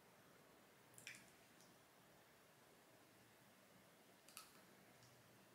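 A spoon clinks sharply.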